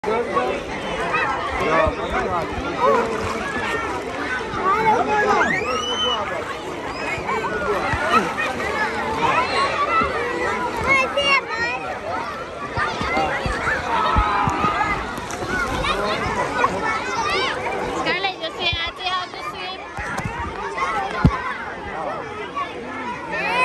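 A crowd of children and adults chatter and shout in an outdoor pool.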